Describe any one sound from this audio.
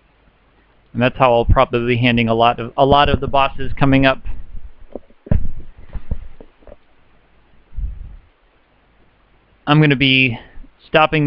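A young man talks animatedly into a headset microphone, close by.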